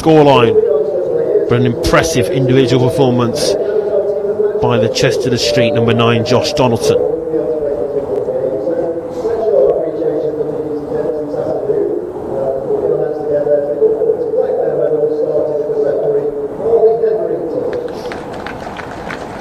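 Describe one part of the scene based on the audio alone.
A woman sings slowly through loudspeakers in a wide open space.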